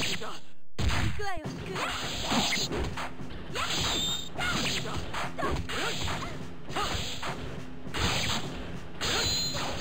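Fighting game characters strike each other with thudding hits and sword slashes.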